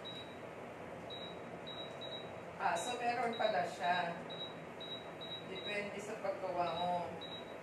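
A pot bubbles on a stove.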